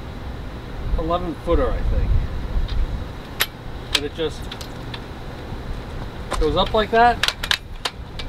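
An older man talks calmly and close by.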